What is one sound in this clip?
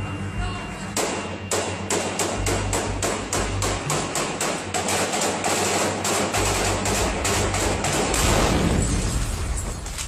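Rifles fire in rapid bursts close by.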